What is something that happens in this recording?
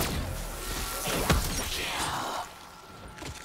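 A green energy blast crackles and hisses loudly.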